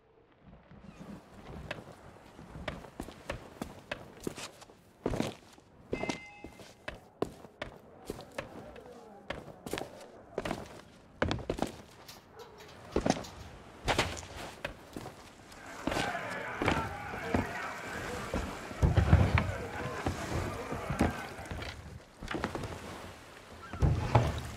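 Footsteps thud steadily on stone and wooden boards.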